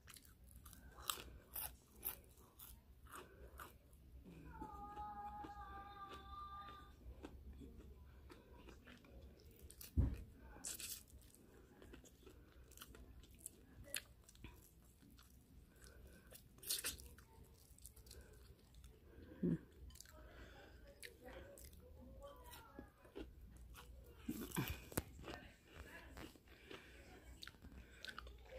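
A woman chews and smacks her lips close up.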